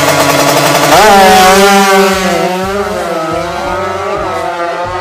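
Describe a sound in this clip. A racing motorcycle roars away at full throttle.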